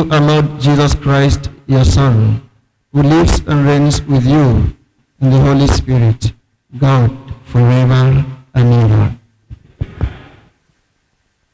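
A man speaks with animation through a microphone.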